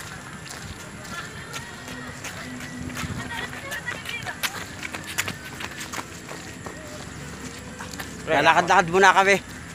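Footsteps tap on a wet paved road.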